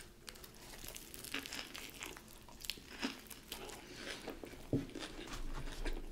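A woman bites and chews a sandwich close to a microphone.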